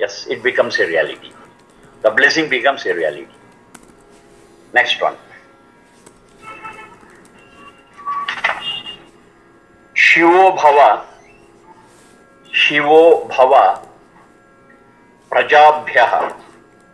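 An elderly man chants slowly in short phrases, close to a microphone.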